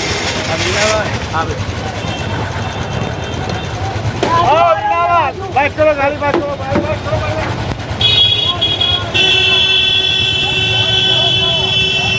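Traffic rumbles steadily on a busy street.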